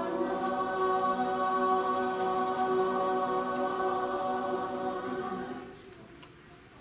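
A large choir sings a sustained chord in a resonant hall.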